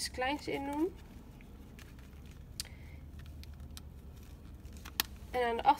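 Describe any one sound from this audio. A leather wallet creaks and taps softly as it is folded shut by hand.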